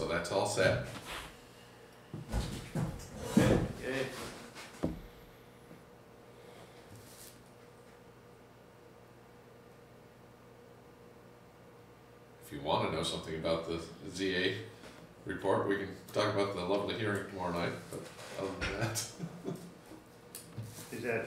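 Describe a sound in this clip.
An older man speaks calmly, heard through a microphone.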